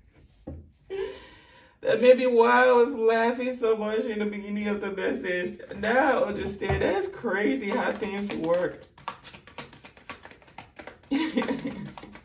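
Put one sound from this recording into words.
Playing cards are shuffled and riffled by hand.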